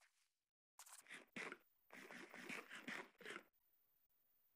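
A game character munches and chews food.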